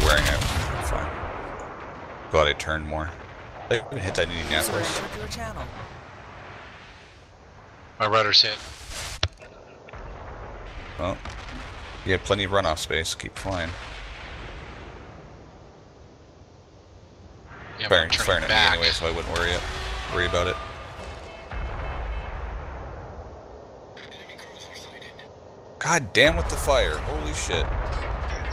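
Heavy ship guns fire with deep, rumbling booms.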